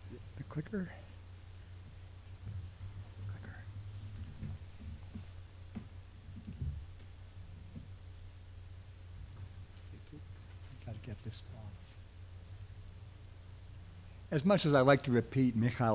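An elderly man speaks into a microphone over a loudspeaker, in a calm, good-humoured voice.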